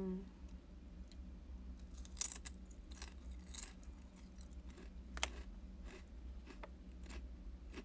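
A young woman chews and smacks her lips softly close by.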